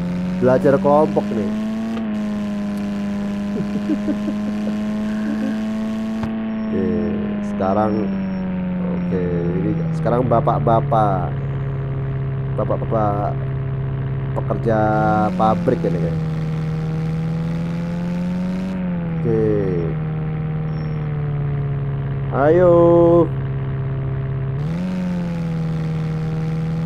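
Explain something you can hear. A van engine hums steadily, its pitch rising and falling as it drives.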